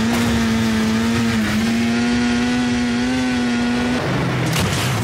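A small vehicle engine drones steadily at a constant pitch, then cuts off.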